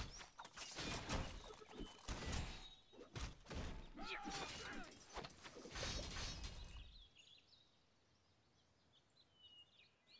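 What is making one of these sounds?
Swords clash as soldiers fight a battle.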